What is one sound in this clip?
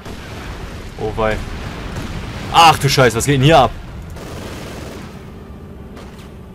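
Loud explosions boom and rumble in a battle.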